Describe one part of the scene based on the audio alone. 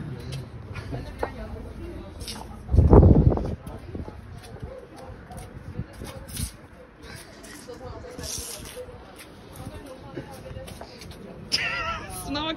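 High heels tap and scuff on a hard floor.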